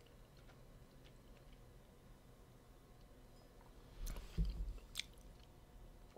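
A man sips wine from a glass.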